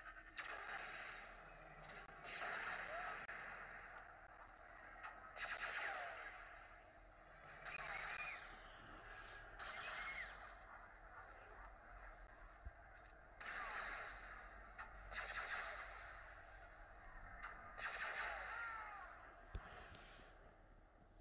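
Explosions roar in repeated bursts.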